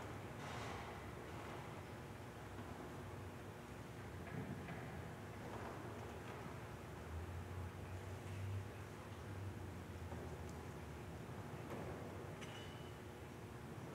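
A man speaks quietly in a large echoing hall.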